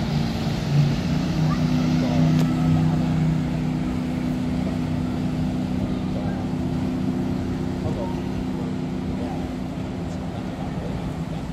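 A boat engine hums low and steadily, then fades as it moves away.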